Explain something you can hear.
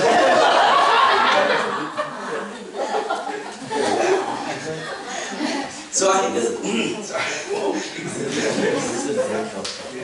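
A young man speaks with animation through a microphone in a large room.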